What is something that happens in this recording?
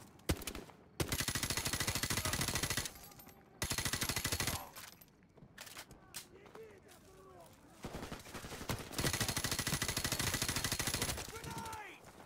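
An automatic rifle fires in bursts.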